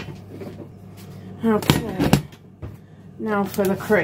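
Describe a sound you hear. A heavy pot is set down on a hard surface with a knock.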